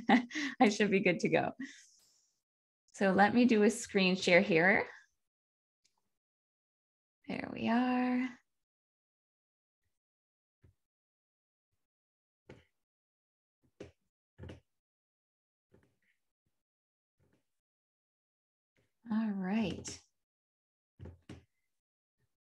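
A young woman speaks warmly and laughs softly, close to a microphone over an online call.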